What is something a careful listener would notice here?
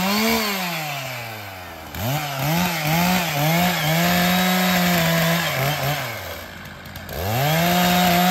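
A chainsaw engine revs up and down, then idles and roars again outdoors.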